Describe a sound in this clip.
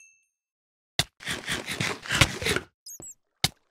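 A stone block crumbles and breaks.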